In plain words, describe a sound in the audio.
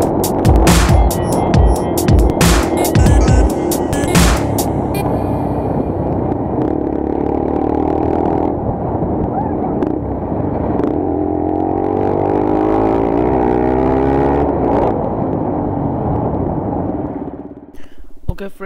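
A motorcycle engine roars loudly as the bike rides along.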